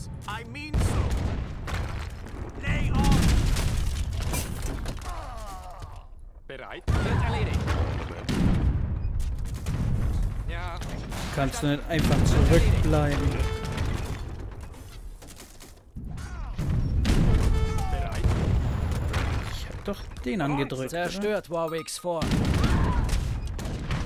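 Cannons fire with deep booming blasts.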